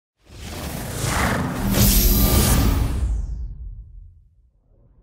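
A game console's startup chime swells and fades away.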